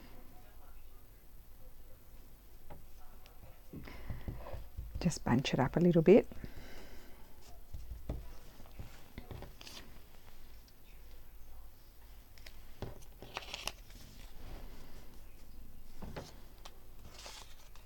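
Paper rustles and crinkles close by as hands handle it.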